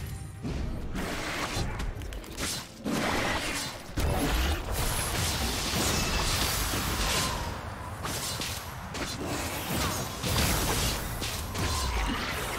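Magical spell effects whoosh and crackle in a busy fight.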